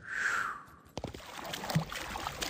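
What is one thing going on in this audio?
Water splashes as a horse wades in.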